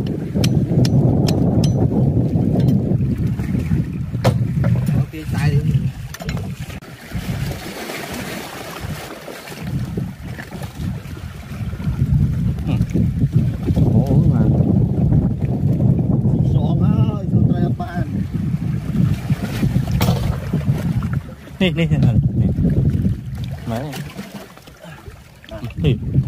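Shallow water splashes and laps around rocks.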